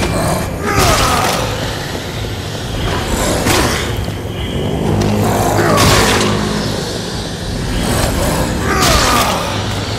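A heavy blade swings with a loud whoosh and strikes.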